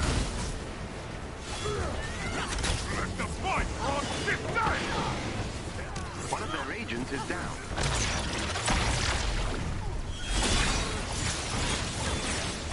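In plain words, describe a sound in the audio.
Energy blasts crackle and whoosh in bursts.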